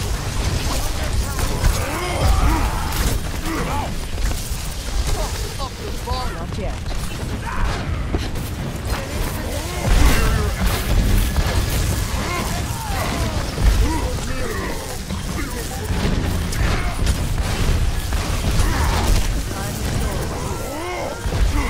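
An electric beam weapon crackles and zaps steadily.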